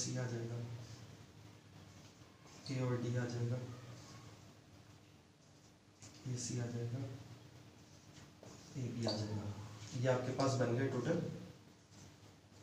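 A man speaks calmly and clearly, close by, as if explaining.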